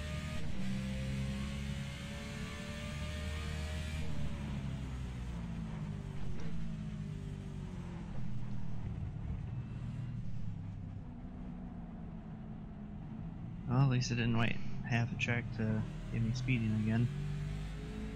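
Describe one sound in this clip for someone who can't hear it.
A race car engine drones and shifts pitch as the car speeds through corners.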